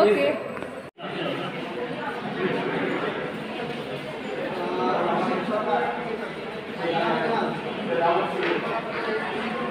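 Several people talk in a murmur in a room.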